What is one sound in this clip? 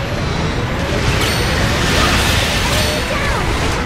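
A beam weapon blasts with a loud burst.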